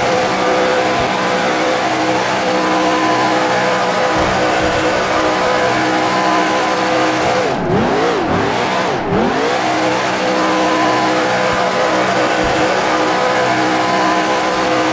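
Tyres screech and squeal as a car spins in circles.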